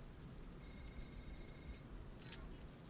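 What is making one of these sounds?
An electronic device hums with a steady high tone.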